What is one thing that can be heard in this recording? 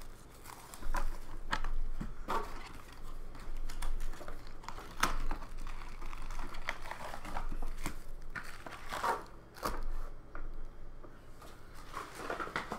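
Plastic card wrappers crinkle and tear.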